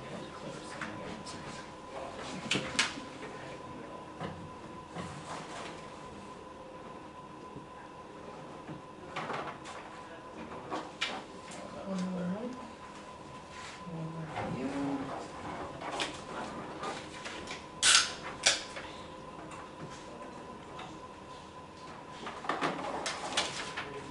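Papers rustle and shuffle on a table.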